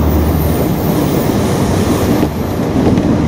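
Another train rushes past close by with a loud whoosh.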